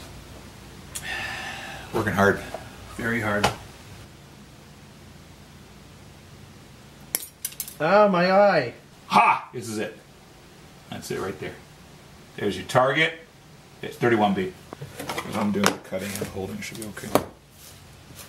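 A middle-aged man speaks casually, close by.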